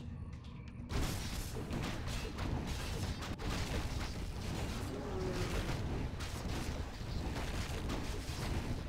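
Swords clash and strike repeatedly in a fight.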